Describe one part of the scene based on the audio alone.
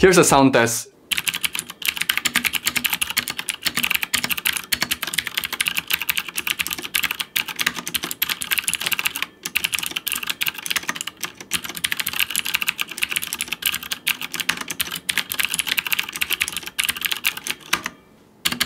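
Keyboard keys clack quickly and steadily as a man types.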